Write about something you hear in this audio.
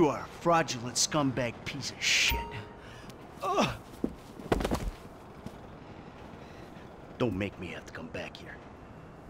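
A man speaks angrily up close.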